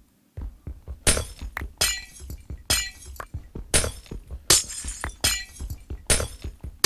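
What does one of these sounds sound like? Glassy blocks crack and shatter in quick bursts.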